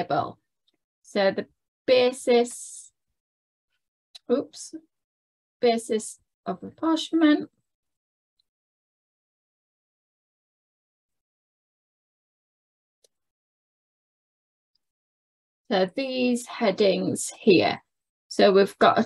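A woman explains calmly, heard close through a microphone, with pauses.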